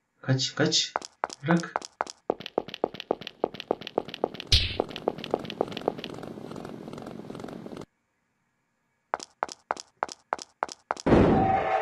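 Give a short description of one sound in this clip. Footsteps tap quickly and evenly.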